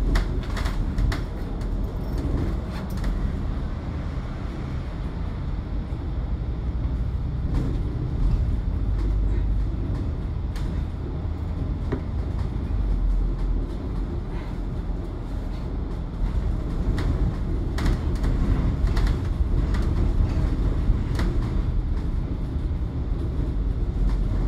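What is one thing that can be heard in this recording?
The bus body rattles and clicks over the road.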